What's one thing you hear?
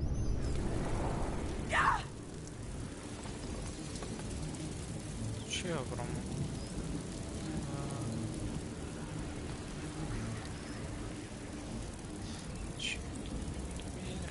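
Fire crackles and roars nearby.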